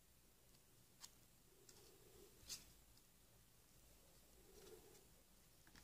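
Plastic cards click and tap softly against each other.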